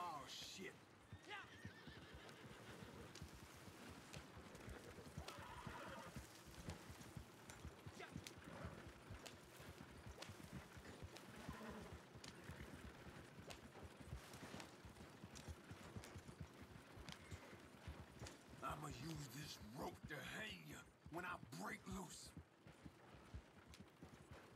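Wagon wheels rumble and rattle over rough ground.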